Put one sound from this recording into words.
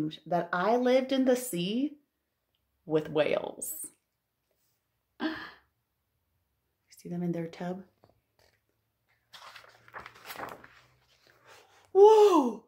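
A woman reads aloud expressively, close by.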